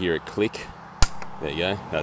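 A plastic clip clicks once, sharp and close.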